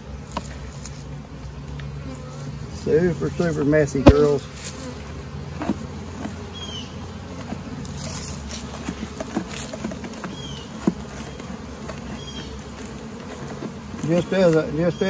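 Bees buzz steadily around an open hive.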